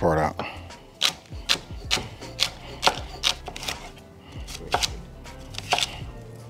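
A knife chops vegetables against a wooden board with sharp, steady knocks.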